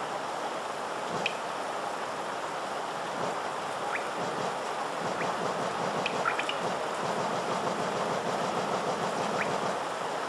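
A game menu clicks softly as pages turn.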